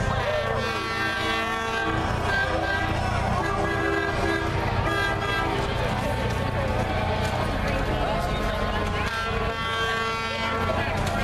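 A crowd of spectators chatters along an outdoor street.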